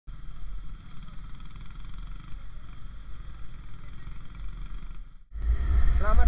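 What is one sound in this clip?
Motorcycle engines idle and rumble nearby.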